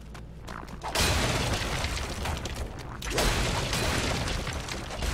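Wooden planks smash and splinter with loud crashes.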